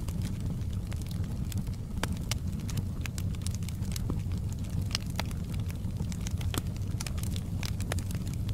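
Logs crackle and pop in a fire.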